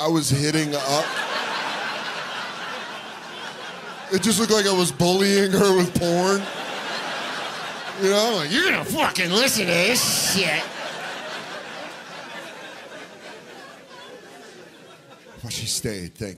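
An audience laughs.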